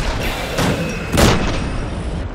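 An explosion bursts loudly.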